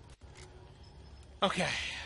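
A rifle bolt clicks and rattles as a rifle is reloaded.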